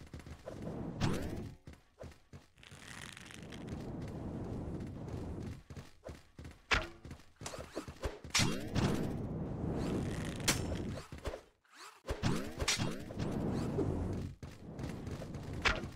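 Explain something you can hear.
Swords swish and clash with sharp electronic zaps.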